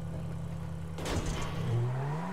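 A car lands with a heavy thud.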